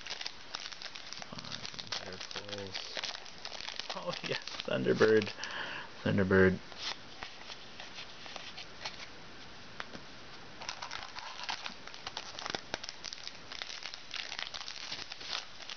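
A foil wrapper crinkles and rustles close by.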